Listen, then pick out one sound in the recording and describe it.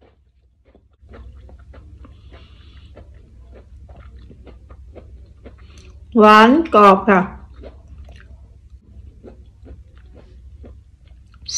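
A woman chews food noisily close to a microphone.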